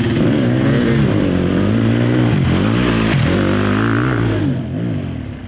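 A dirt bike engine revs loudly up close, its pitch rising and falling as the rider shifts.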